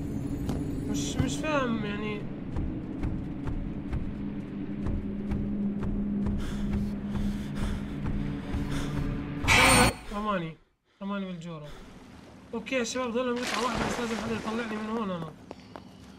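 A young man speaks with animation through a microphone.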